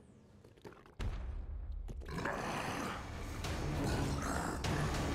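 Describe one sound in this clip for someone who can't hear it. A monster roars and growls loudly.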